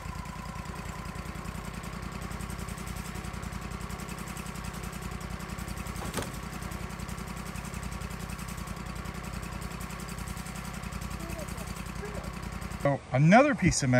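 A sawmill engine runs with a steady low hum.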